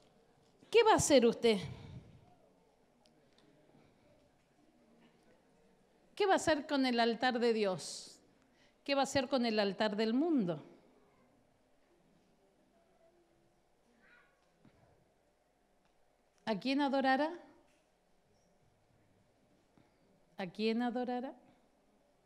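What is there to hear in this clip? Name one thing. A middle-aged woman speaks into a microphone in short, expressive phrases with long pauses.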